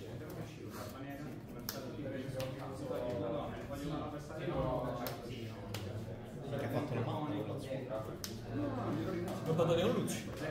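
Playing cards tap and slide on a soft mat.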